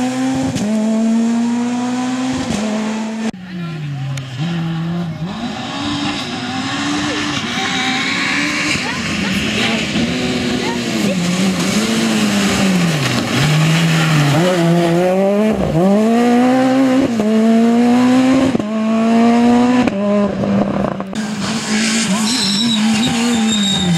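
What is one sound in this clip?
A rally car engine roars and revs up and down as the car speeds past.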